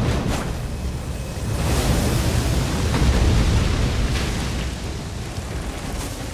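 A dragon breathes a roaring blast of icy frost.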